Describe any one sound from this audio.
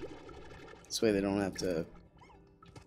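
A cartoonish bubbling, warbling game sound plays as an item is picked up.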